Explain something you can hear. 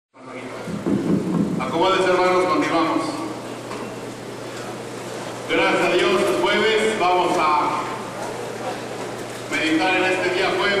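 A middle-aged man speaks with animation through a microphone and loudspeakers in an echoing hall.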